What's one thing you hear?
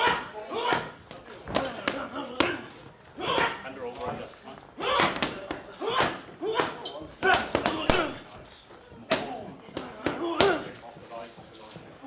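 Boxing gloves smack against focus pads.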